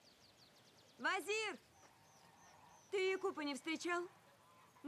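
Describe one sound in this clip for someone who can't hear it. A young woman calls out loudly.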